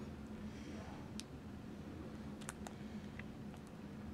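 A plastic sleeve crinkles in a hand.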